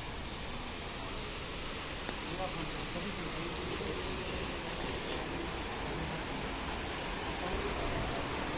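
Water splashes down a small fountain.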